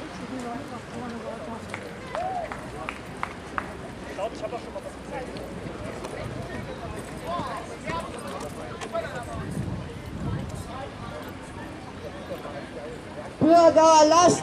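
A crowd of men and women talks in a low murmur outdoors.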